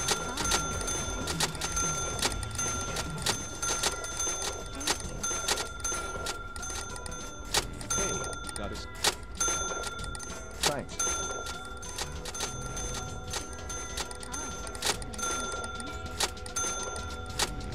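A checkout scanner beeps repeatedly.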